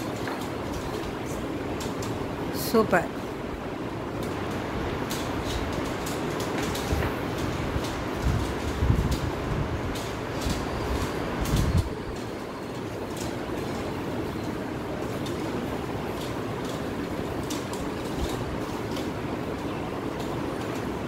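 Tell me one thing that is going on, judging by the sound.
Paper crinkles and rustles close by.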